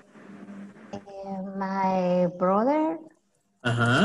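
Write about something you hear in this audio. A woman speaks slowly and clearly over an online call.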